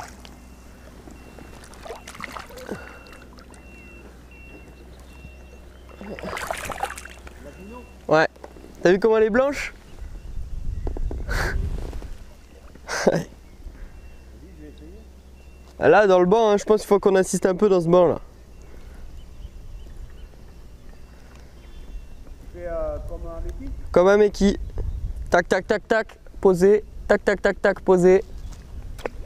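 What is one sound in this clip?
Small waves lap gently against an inflatable boat.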